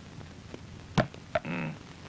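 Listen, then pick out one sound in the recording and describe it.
Hands slap down hard on a desk.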